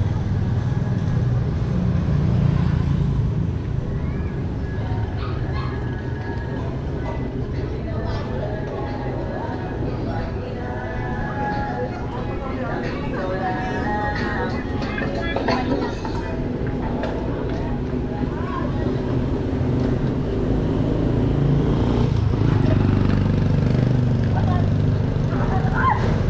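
Motorcycles and tricycles putter past nearby.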